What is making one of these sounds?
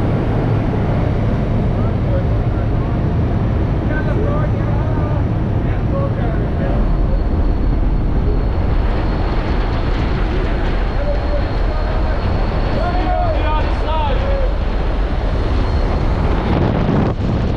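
A small plane's engine drones loudly.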